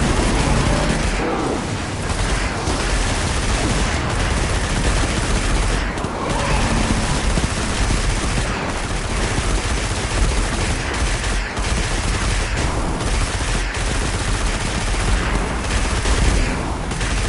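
Blasts explode nearby.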